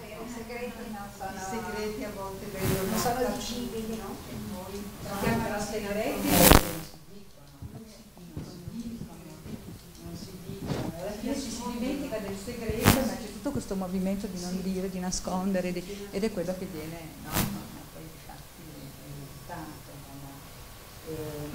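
A woman speaks calmly to an audience.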